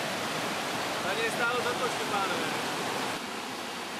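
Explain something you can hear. A young man calls out outdoors over rushing water.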